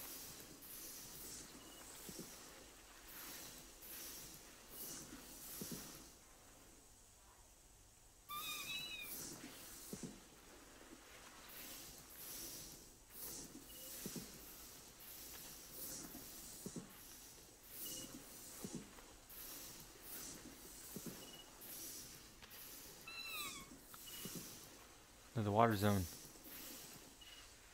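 Footsteps rustle through tall dry grass at a steady walking pace.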